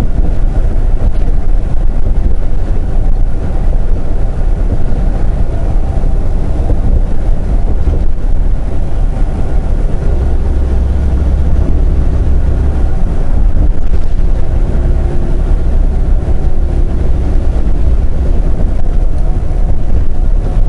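Tyres roar on the highway road surface.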